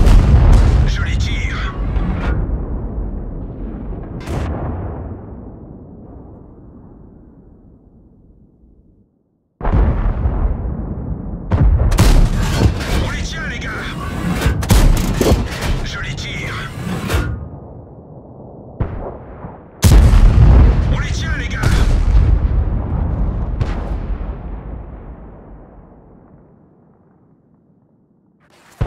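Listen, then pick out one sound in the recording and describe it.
A tank cannon fires with a deep boom that rolls away slowly.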